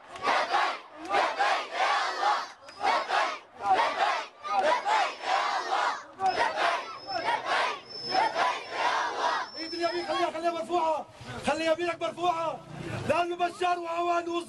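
A large crowd of men and boys chants in rhythm outdoors.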